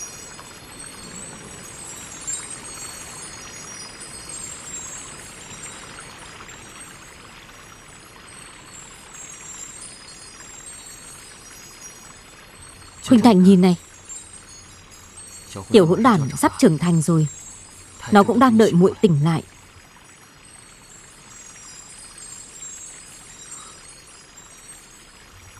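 A river flows over stones.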